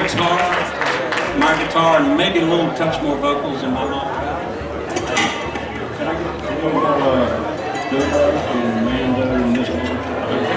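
A man sings through loudspeakers outdoors.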